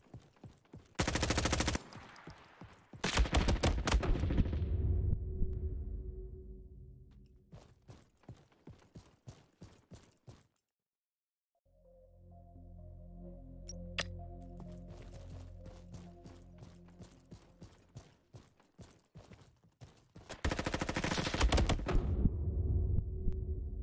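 A rifle fires rapid bursts of loud shots that echo away.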